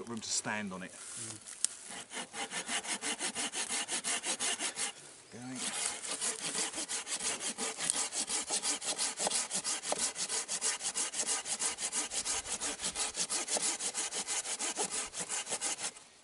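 A hand saw cuts rapidly back and forth through wood.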